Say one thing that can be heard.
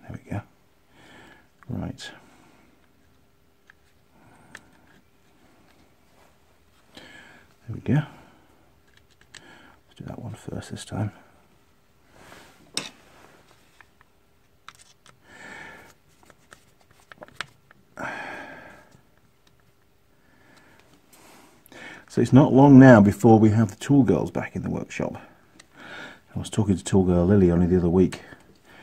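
Small plastic parts click and rattle as hands handle them.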